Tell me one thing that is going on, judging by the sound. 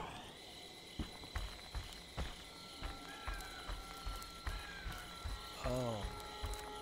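Heavy footsteps crunch on gravel.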